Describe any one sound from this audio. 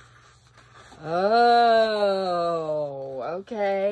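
A large sheet of paper crackles as it unrolls.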